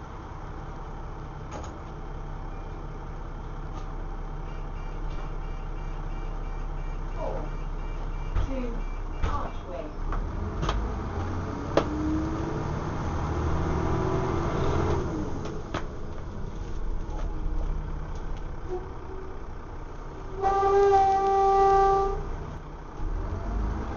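A bus engine rumbles steadily while the bus rolls along.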